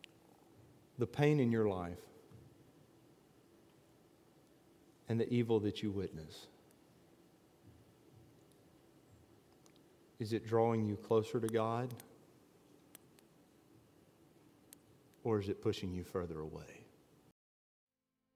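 A man speaks through a microphone in short phrases with pauses, in a large echoing hall.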